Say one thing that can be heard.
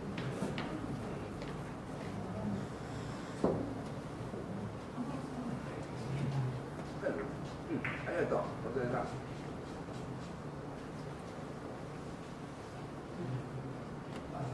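Pool balls clack together as they are packed into a rack.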